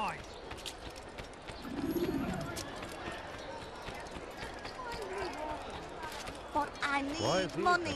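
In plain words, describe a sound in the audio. Footsteps patter on stone paving.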